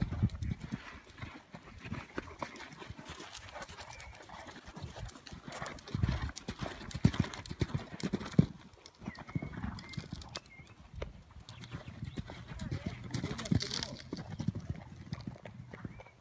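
Hooves thud rhythmically on soft sand as a horse canters.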